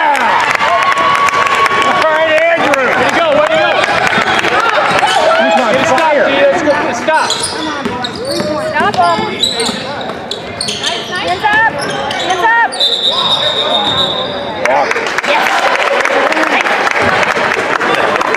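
Basketball shoes squeak sharply on a wooden court.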